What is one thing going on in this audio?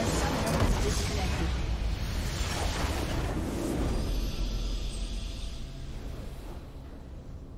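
A large structure explodes with a loud, rumbling blast that slowly fades.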